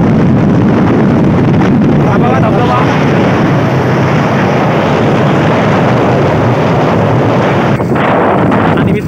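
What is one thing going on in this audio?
Wind roars loudly against a moving motorbike.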